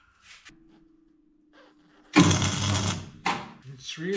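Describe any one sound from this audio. A cutting torch hisses.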